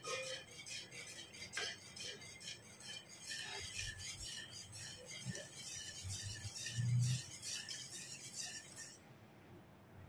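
A wire whisk scrapes and clicks rapidly against a metal pan.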